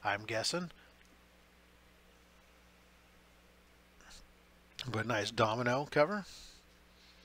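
A middle-aged man speaks calmly into a nearby microphone.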